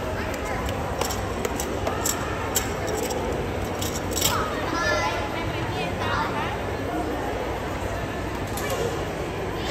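A gymnast's feet thud on a wooden balance beam.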